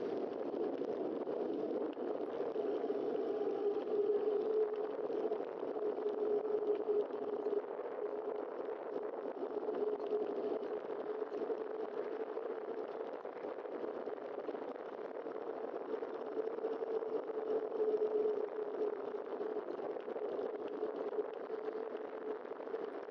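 Wind rushes steadily past a cyclist riding.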